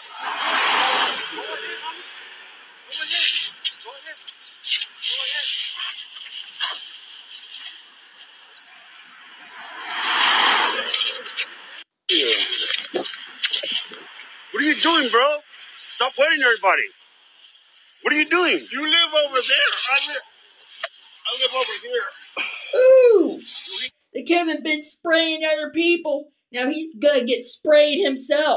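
Another man argues back loudly.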